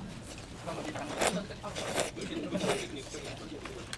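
A woman slurps noodles loudly, close to a microphone.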